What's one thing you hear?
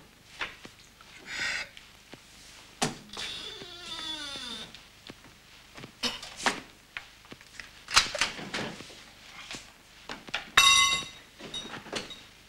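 A man talks into a telephone close by.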